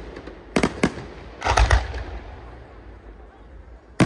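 Fountain fireworks hiss and roar at ground level.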